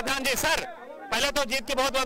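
A man speaks into a microphone in a noisy crowd.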